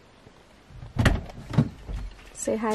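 A car door clicks open and thumps.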